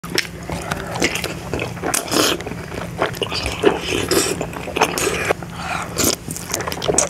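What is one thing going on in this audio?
A young man chews food wetly close to a microphone.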